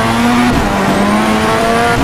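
A car's exhaust pops and crackles.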